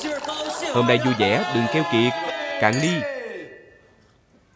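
A group of men and a young woman shout a cheerful toast together.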